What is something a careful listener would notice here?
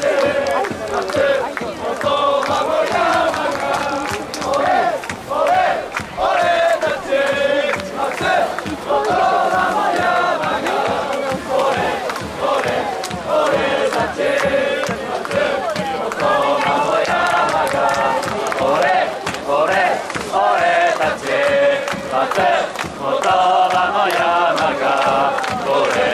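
A large crowd of men and women chants and sings loudly together outdoors.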